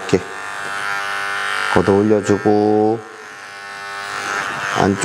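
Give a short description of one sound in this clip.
An electric clipper buzzes steadily up close.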